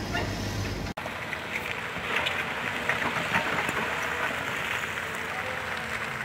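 An excavator bucket scrapes and digs through rubble and soil.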